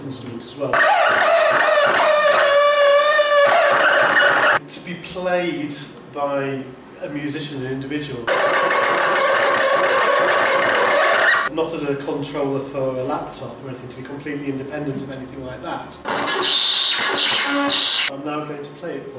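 An electronic instrument buzzes and whines with a loud, wavering tone.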